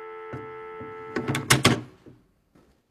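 A telephone handset clatters down onto its cradle.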